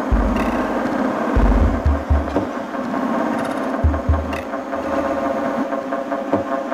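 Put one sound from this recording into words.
Electronic dance music with a deep pounding bass plays loudly from speakers.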